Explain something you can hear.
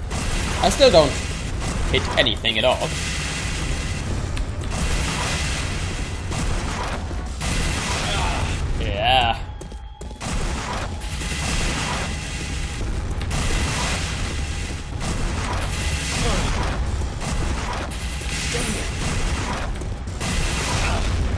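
A rapid-fire weapon shoots repeatedly.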